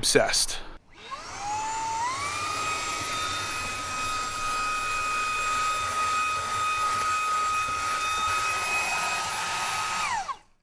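A small handheld vacuum cleaner whirs up to a steady high whine and then cuts off.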